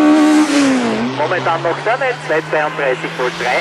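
A rally car engine crackles and pops as the driver shifts gears through a bend.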